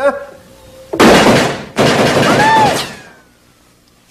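Something bursts with a loud crash and crackling sparks.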